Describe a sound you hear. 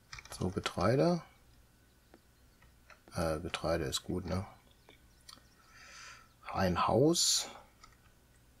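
A middle-aged man talks calmly and closely into a microphone.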